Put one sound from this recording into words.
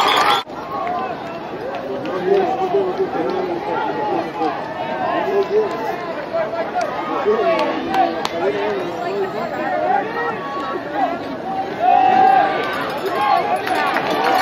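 Young men on the sideline shout and call out.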